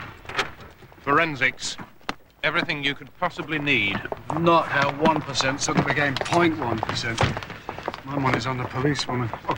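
A man speaks outdoors.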